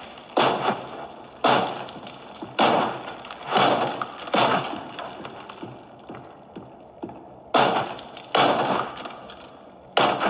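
Wooden boards thud and crack as they are pried loose.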